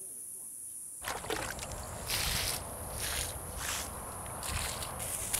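A hand tool scrapes and rustles in soil.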